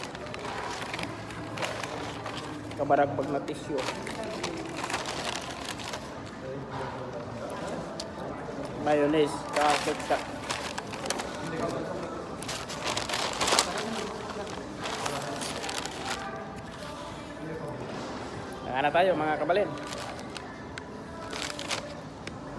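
Paper wrappers and bags rustle and crinkle.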